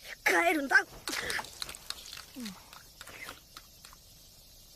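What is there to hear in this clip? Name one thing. A young boy slurps food noisily from a bowl.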